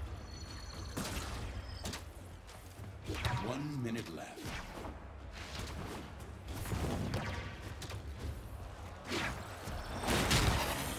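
Whooshing swipes and metallic clashes ring out.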